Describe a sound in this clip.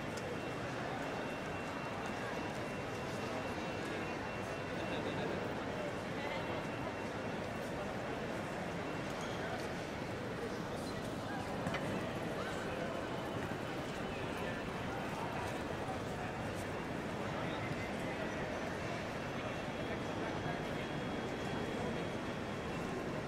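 A distant crowd murmurs steadily in a large echoing hall.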